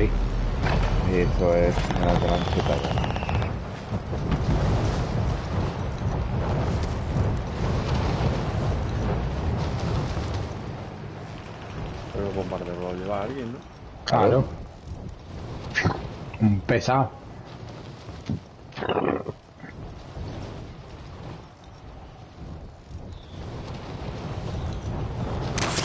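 Wind rushes loudly past a falling parachutist.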